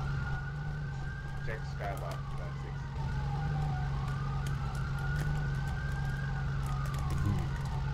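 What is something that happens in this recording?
A police siren wails nearby with a rising and falling tone.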